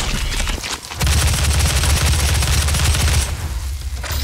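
A heavy gun fires rapid bursts of loud shots.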